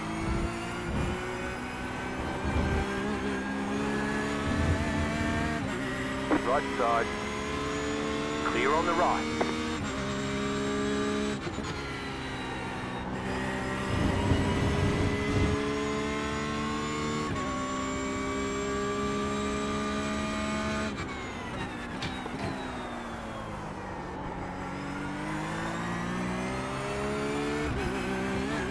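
A racing car engine roars and climbs in pitch through the gears, then drops sharply and winds back up.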